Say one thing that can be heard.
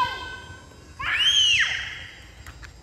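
A toddler squeals sharply nearby.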